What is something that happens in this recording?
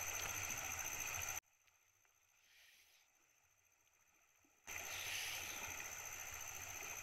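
Water rushes steadily over a shallow weir outdoors.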